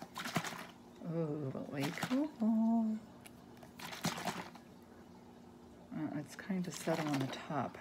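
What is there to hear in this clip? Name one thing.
Liquid sloshes in a plastic bottle.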